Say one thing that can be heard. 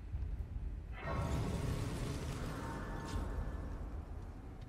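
A bright shimmering chime swells and rings out.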